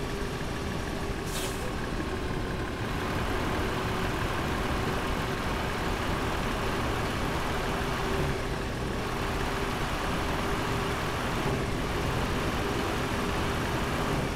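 A semi truck engine drones while cruising.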